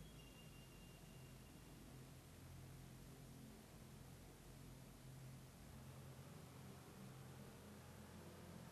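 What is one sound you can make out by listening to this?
A car engine hums steadily at low speed.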